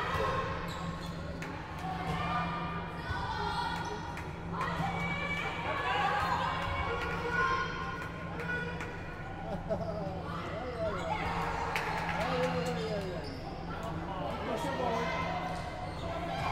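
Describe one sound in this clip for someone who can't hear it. Young women call out and shout to each other in a large echoing hall.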